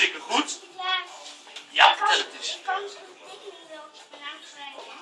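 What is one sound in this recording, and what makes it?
A young child speaks softly nearby.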